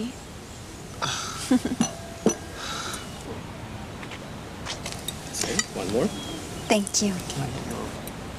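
A young man speaks close by softly.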